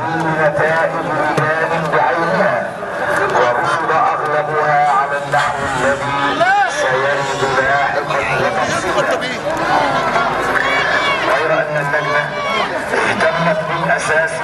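Men nearby shout and talk excitedly.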